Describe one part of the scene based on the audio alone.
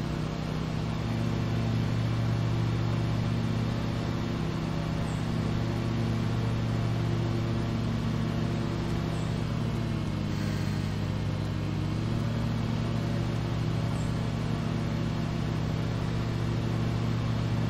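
A lawn mower engine hums steadily.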